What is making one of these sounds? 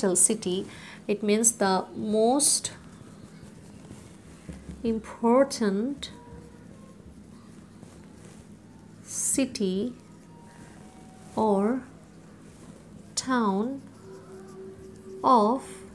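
A woman speaks slowly and clearly, close by, as if dictating.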